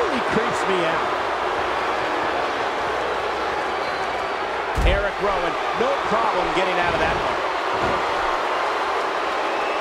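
A large crowd roars and murmurs steadily in a big arena.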